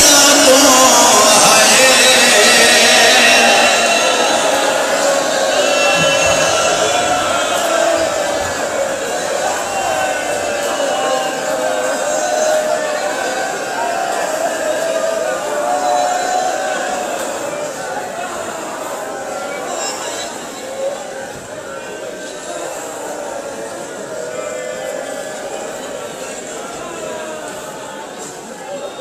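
A large crowd of men chants loudly together in an echoing hall.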